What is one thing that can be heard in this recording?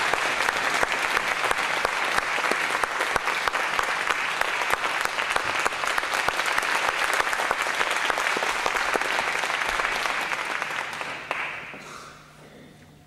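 An audience claps loudly in a large hall, then the applause dies away.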